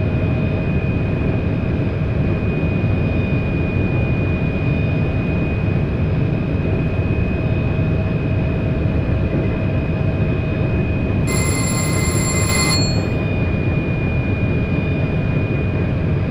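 A train rumbles steadily along the rails at high speed.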